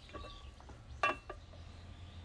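A lacquered box lid clicks open.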